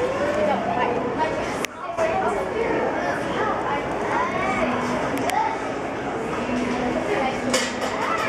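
Several adults chatter in the background of a large, busy room.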